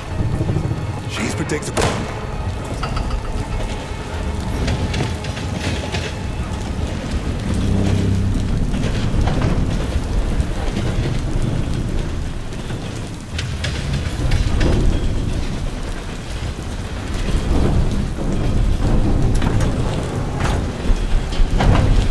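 Rain patters down outdoors in a gusting wind.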